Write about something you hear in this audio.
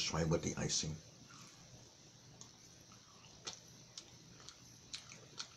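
A man chews and crunches food with his mouth close to the microphone.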